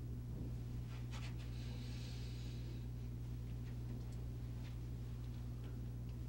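A man shifts in a chair, his clothes rustling.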